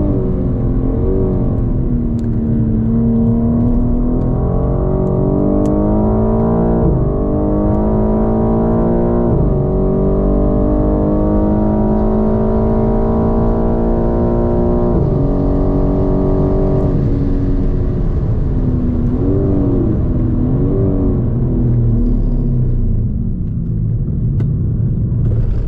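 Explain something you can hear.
Wind and tyres rumble steadily inside a fast-moving car.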